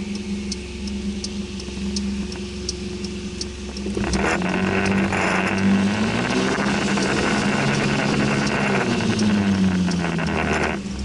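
Raindrops tap on a car windscreen.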